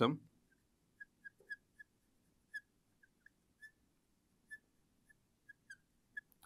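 A marker squeaks in short taps on a glass board.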